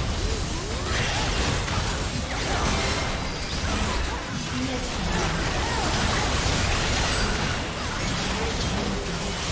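Magic blasts and weapon clashes crackle and boom in a busy fight.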